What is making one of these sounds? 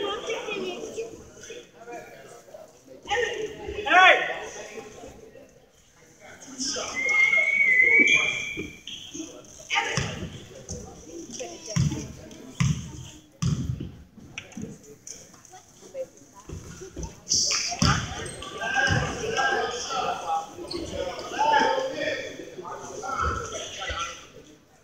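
Children and adults talk and call out in an echoing hall.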